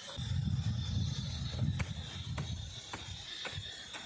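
A hoe chops repeatedly into dry soil.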